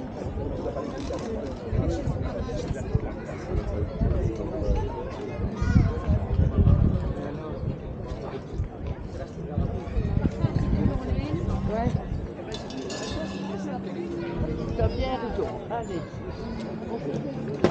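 A crowd of men and women chatter nearby, outdoors on a busy street.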